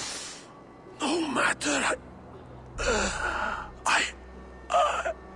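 An elderly man speaks weakly and hoarsely, close by.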